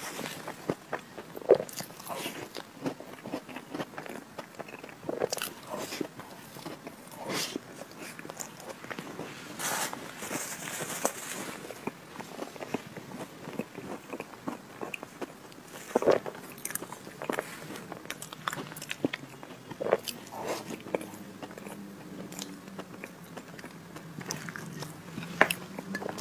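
A young woman chews and smacks her lips on soft cream cake close to a microphone.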